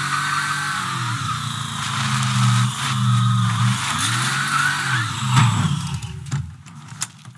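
A car engine revs and rumbles loudly, then slows to a stop.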